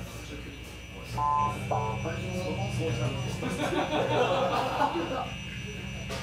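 An electric bass guitar plays a deep line.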